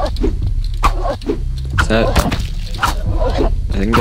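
A knife slashes wetly into flesh several times.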